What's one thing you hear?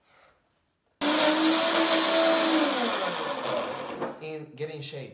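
A blender whirs loudly, then winds down.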